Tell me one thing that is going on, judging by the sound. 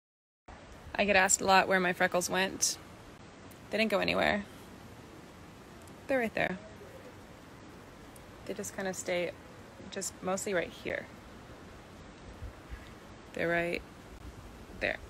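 A young woman talks calmly and close to a phone microphone, with pauses.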